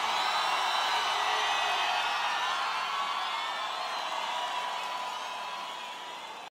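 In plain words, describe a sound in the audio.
A large crowd cheers and screams loudly, then slowly fades.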